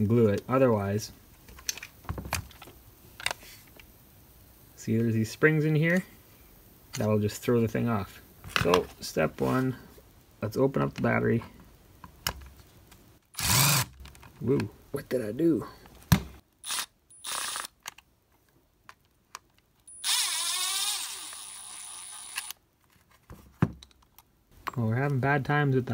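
Plastic battery casings click and knock together when handled.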